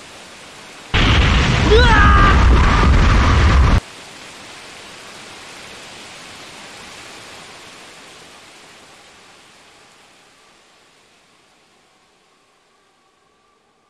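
A loud blast roars and slowly dies away.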